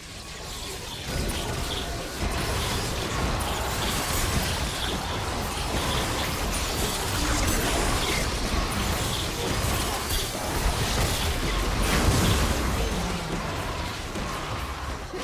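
Video game spell effects whoosh, zap and crackle during a battle.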